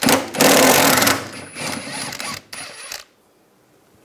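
An impact wrench whirs loudly, spinning off a nut.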